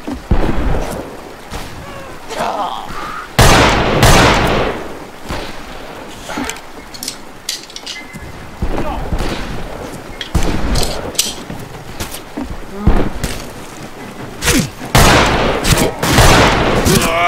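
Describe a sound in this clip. A revolver fires loud shots, one every few seconds.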